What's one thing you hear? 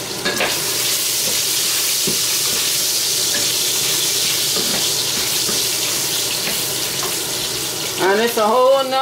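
Meat sizzles loudly in hot oil.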